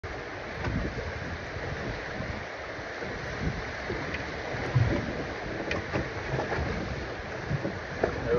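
Wind blows across the water.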